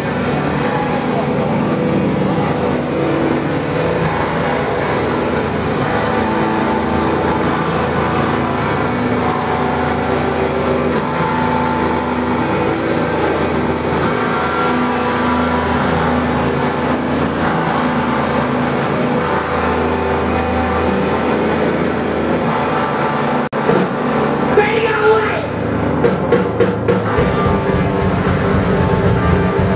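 Electric guitars play loudly through amplifiers.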